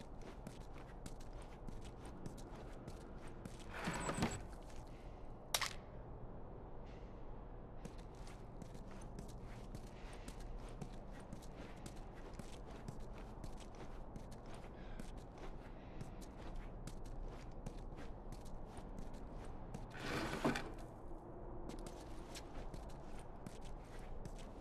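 Footsteps tread steadily on a hard floor indoors.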